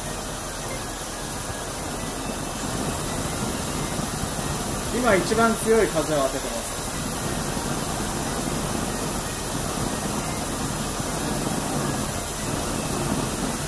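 A gas burner hisses steadily.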